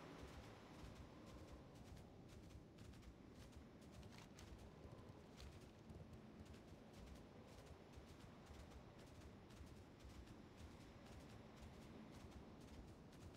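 Quick footsteps patter steadily on grass.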